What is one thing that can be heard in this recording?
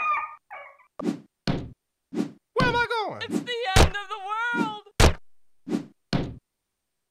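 Blows knock against a wooden fence.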